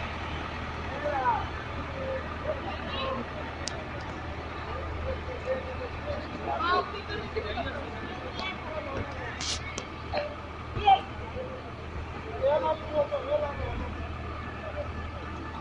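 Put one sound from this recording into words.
Men talk outdoors among themselves.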